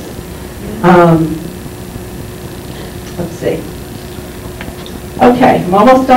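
A woman speaks calmly through a microphone and loudspeaker in a room with some echo.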